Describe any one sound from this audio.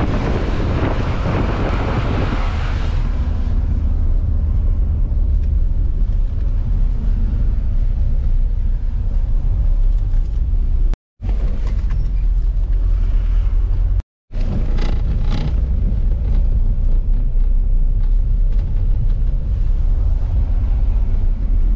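Wind rushes past an open vehicle window.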